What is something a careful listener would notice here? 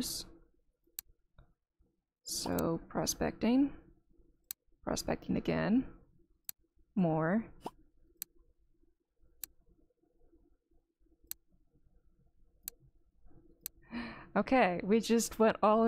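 Short interface clicks tick now and then.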